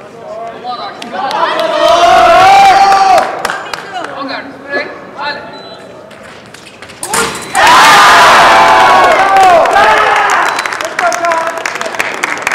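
Spectators shout and cheer loudly in a large echoing hall.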